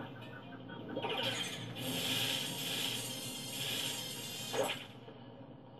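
A rushing wind sound from a video game roars through a television speaker.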